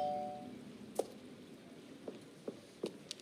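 Footsteps tap on cobblestones.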